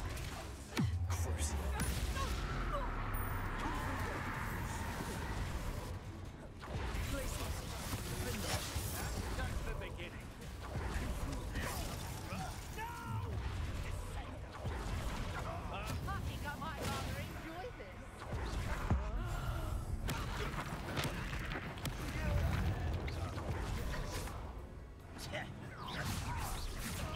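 Magic spells crackle and burst in quick succession.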